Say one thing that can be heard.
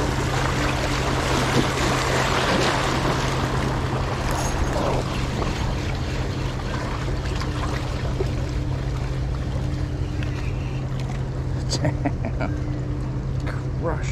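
River water laps against rocks at the bank.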